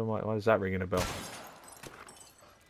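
A gunshot cracks sharply.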